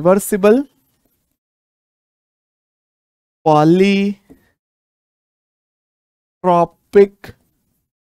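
A young man speaks clearly into a close microphone, in short bursts with pauses.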